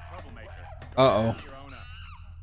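A chimpanzee screeches loudly.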